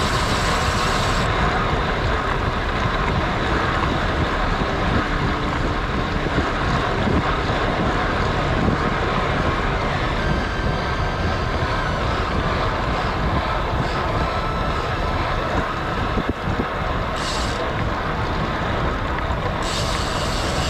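Road bike tyres hum on asphalt.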